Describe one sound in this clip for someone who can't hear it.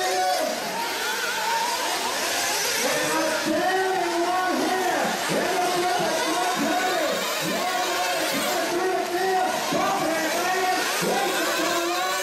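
Small electric model cars whine loudly, their motors rising and falling in pitch as they race.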